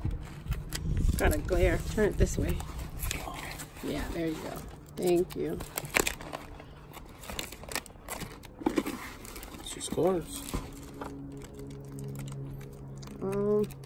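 Plastic binder pages crinkle as they are flipped.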